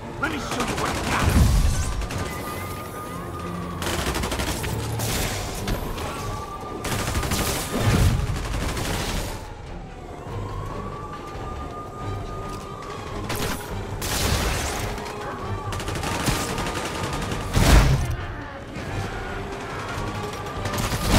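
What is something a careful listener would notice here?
A siren wails over and over in the background.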